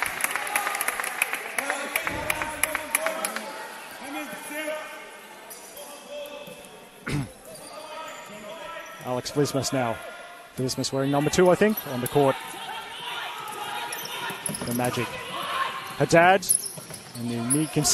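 Shoes squeak sharply on a hard indoor court.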